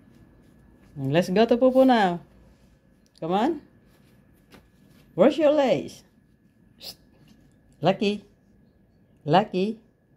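A small dog whines in short, drawn-out cries, close by.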